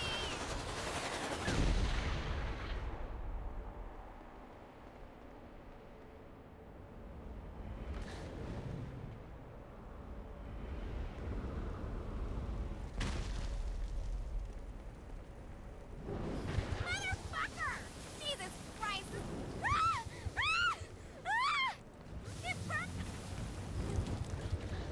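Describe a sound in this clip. Large wings beat with a whooshing rush of air.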